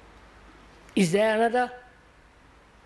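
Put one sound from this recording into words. An elderly man speaks briefly and emphatically into a microphone.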